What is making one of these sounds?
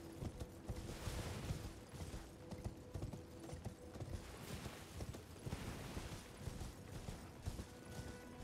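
Horse hooves pound steadily in a fast gallop.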